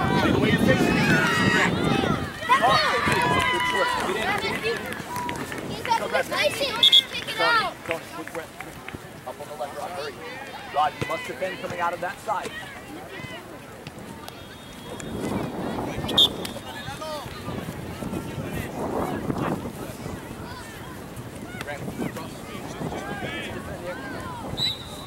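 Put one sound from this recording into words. Children shout to each other outdoors across an open field.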